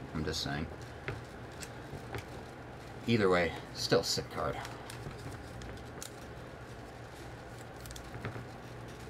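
Trading cards rustle and click as hands shuffle them.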